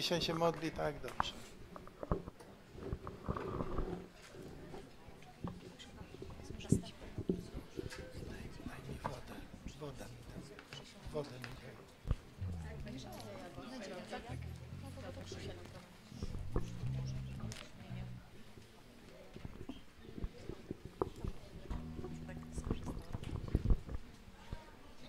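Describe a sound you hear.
Men and women talk quietly in a room.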